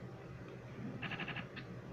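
A television plays a short, rapid pulsing electronic tone.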